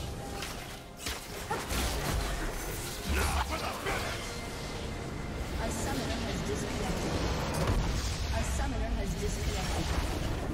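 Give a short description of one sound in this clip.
Battle sound effects of spells and strikes clash rapidly.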